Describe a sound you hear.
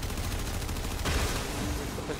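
A fiery blast bursts with a rushing roar.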